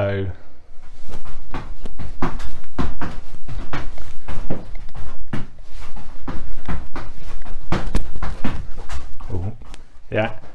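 Feet thump quickly on a mat.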